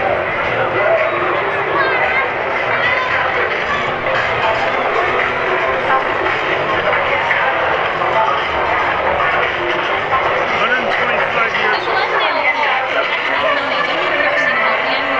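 A large outdoor crowd chatters and calls out steadily.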